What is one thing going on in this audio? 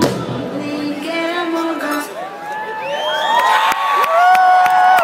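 A large crowd cheers and whistles.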